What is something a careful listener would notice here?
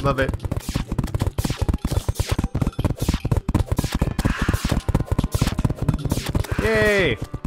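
Rapid game hit sounds thud and click over and over.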